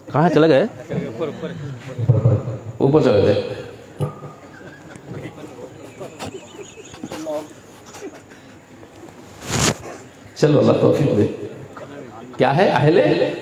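A man recites loudly and with emotion into a microphone, heard through loudspeakers with echo.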